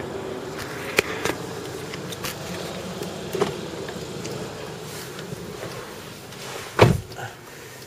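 A car's engine and tyres rumble steadily while driving.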